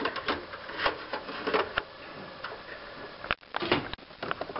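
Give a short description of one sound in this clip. A small hard drive slides into a slot and clicks into place.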